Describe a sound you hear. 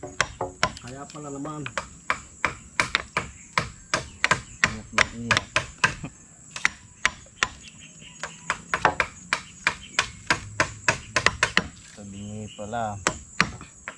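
Steady knocks of a tool pounding wood ring out in quick rhythm.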